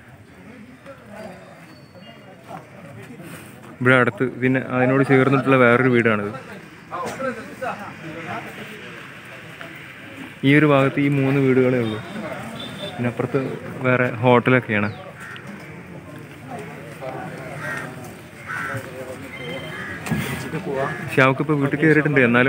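Several men talk quietly in the background.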